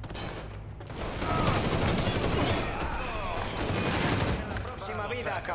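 A rifle fires rapid, loud shots.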